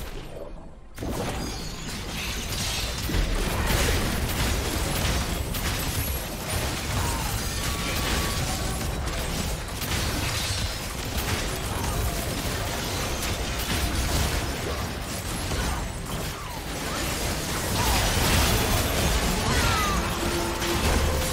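Video game spell effects whoosh, crackle and crash in a battle.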